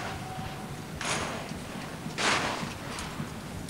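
Rifles clatter and slap sharply in unison as soldiers drill.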